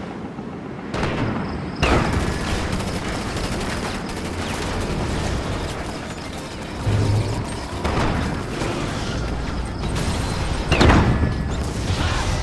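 Heavy guns fire in short bursts.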